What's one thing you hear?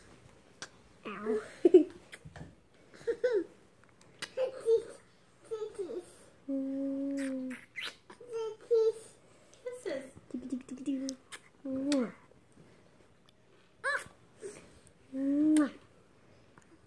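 A toddler girl babbles and chatters happily.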